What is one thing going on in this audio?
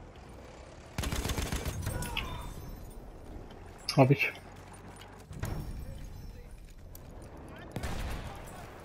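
A machine gun fires in short bursts.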